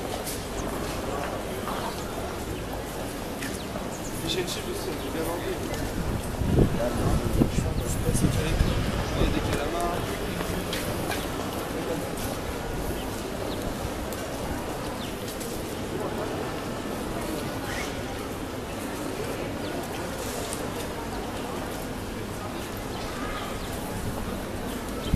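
Outdoors, a murmur of distant voices fills a city street.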